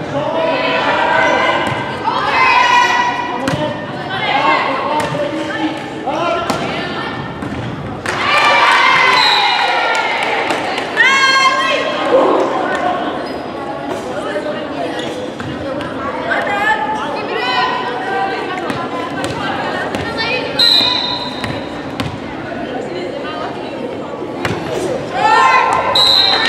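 A volleyball thumps sharply as players hit it.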